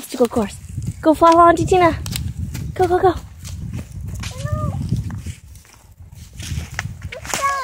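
A young child calls out in a high voice close by.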